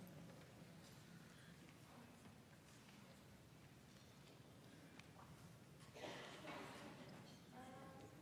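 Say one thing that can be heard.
A school concert band plays softly in a large hall.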